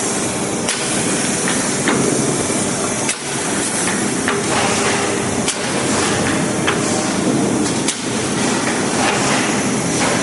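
A packaging machine runs with a steady mechanical clatter.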